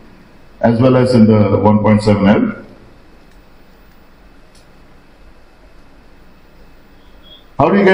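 A man speaks through a microphone and loudspeakers in a large hall.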